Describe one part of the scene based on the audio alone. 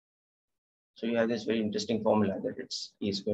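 A man speaks calmly into a microphone, as if over an online call.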